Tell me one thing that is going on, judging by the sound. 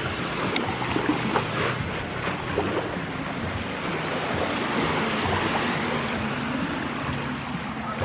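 Bare feet crunch softly across sand.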